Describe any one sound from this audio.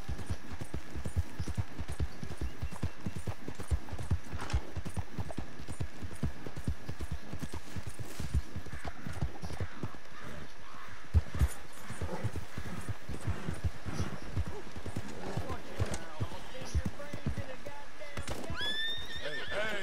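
A horse's hooves thud rhythmically on grass and dirt as it trots.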